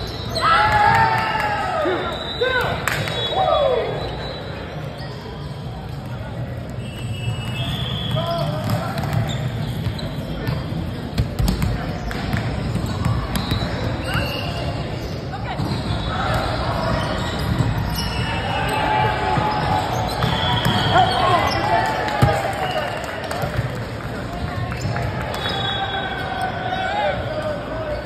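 Sneakers squeak sharply on the wooden floor.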